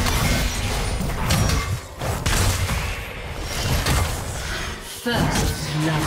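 Magic spells burst and crackle in a hectic fight.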